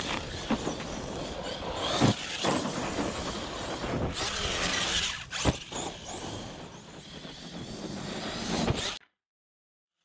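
A small electric motor whines as a toy car races over dirt.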